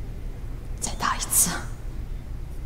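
Another woman speaks a few soft words.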